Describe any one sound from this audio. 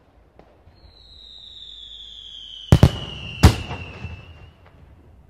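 A firework rocket whistles as it climbs.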